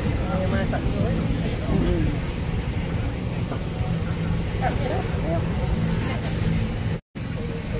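Batter sizzles softly in hot pans.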